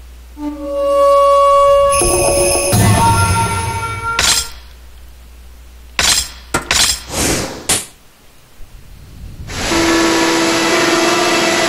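A video game's music plays with bright, sustained tones.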